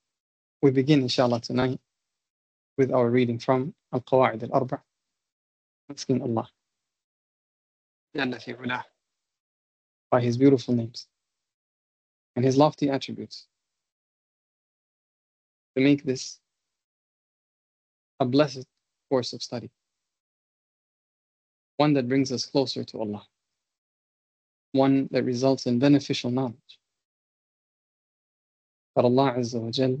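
A man speaks calmly in short phrases with pauses, heard close through an online call.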